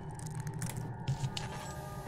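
A torch flame crackles softly.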